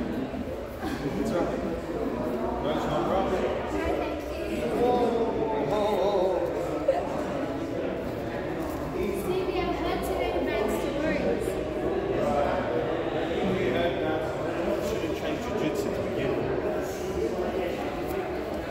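A man speaks calmly, explaining, in a large echoing hall.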